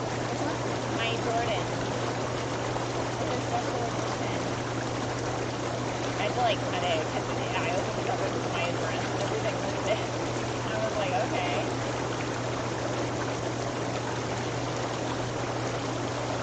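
Water bubbles and churns steadily in a hot tub.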